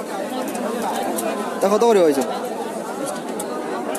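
Plastic wrappers rustle and crinkle as a hand moves them.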